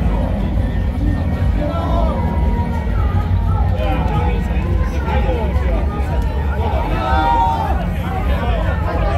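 A crowd of men and women chatters and calls out all around, outdoors.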